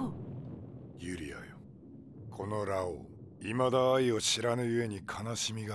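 A man speaks in a deep, stern voice.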